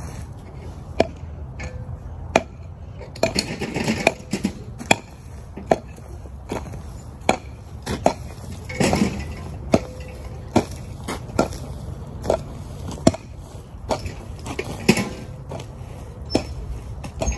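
A pickaxe strikes into hard dry soil again and again.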